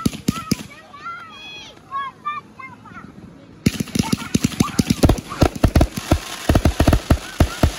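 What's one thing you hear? Fireworks bang and crackle loudly overhead.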